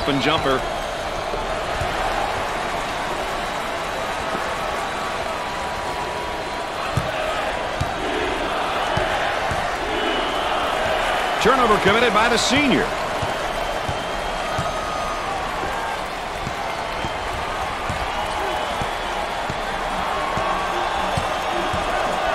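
A crowd roars steadily in a large arena.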